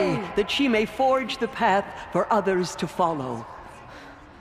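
A woman calls out loudly and commandingly in a large echoing space.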